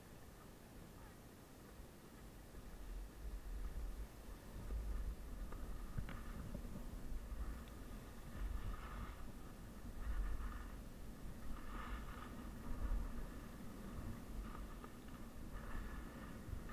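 Wind rumbles past outdoors.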